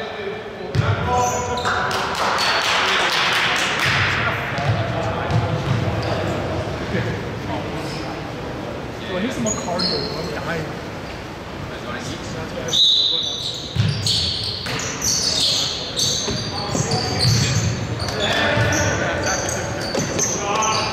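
Young men shout and call out to each other in an echoing hall.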